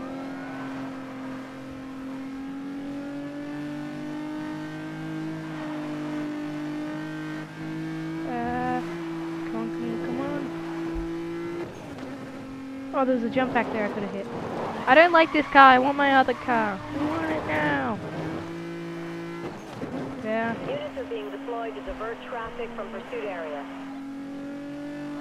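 A car engine roars steadily at high speed.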